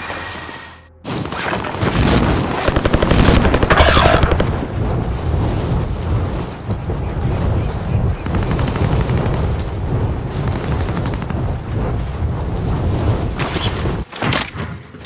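Wind rushes loudly past during a parachute descent.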